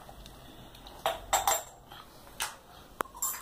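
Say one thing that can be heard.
Toy plastic dishes clink softly.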